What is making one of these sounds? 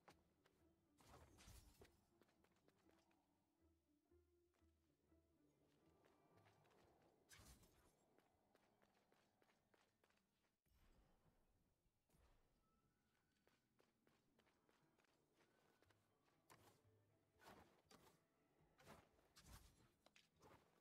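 Game sound effects whoosh and clash as a character leaps and slashes.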